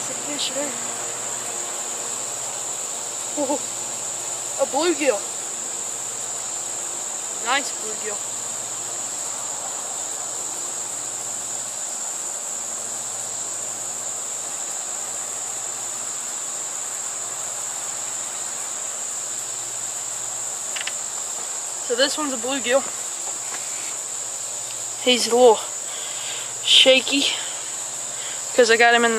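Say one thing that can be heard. A young man talks with excitement outdoors.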